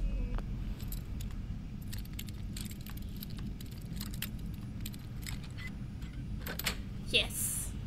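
Lock picks scrape and click in a lock.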